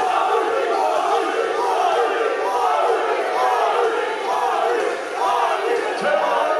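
A man shouts up close.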